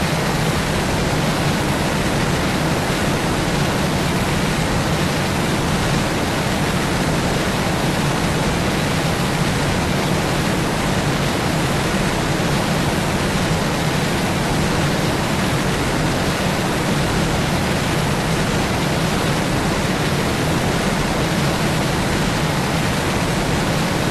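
Propeller engines of a large aircraft drone steadily in flight.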